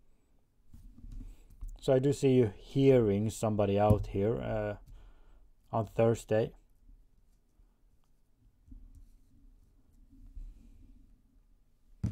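Cards slide and tap on a wooden table.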